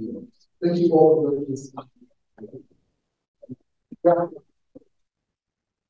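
A man speaks over loudspeakers in a large echoing hall.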